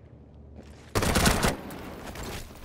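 A burst of gunfire cracks sharply.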